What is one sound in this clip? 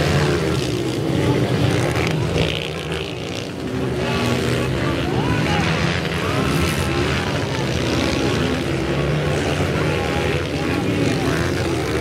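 A crowd of spectators murmurs in the distance.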